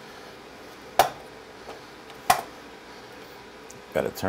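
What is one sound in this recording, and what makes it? Pots and utensils clatter on a stove.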